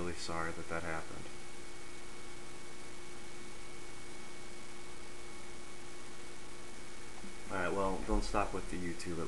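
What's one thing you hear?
A young man speaks close to a microphone, in short phrases with pauses.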